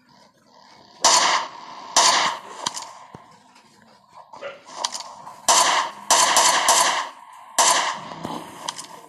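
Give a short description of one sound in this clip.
Rifle shots ring out one at a time, loud and sharp.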